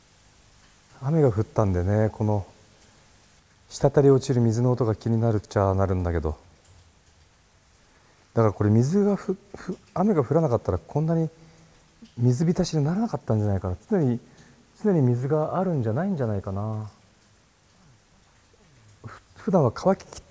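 A man speaks calmly and close by, in bursts with pauses.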